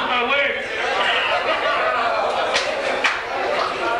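A young man laughs into a handheld microphone.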